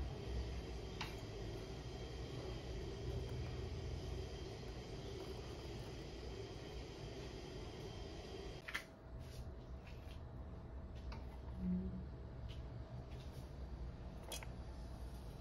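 A wooden spoon taps against a metal bowl.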